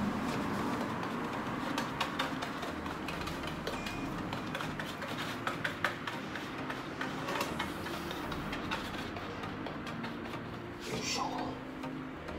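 A brush dabs wet resin onto a sheet.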